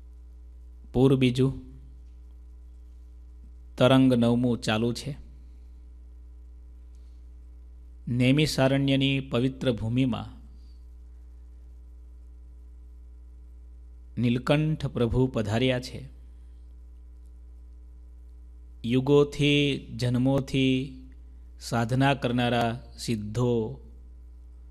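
A man speaks calmly into a microphone in short phrases, pausing often.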